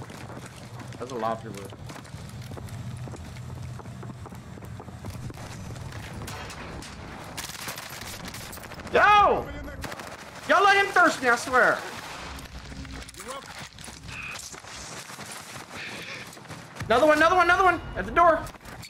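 A young man shouts with excitement into a close microphone.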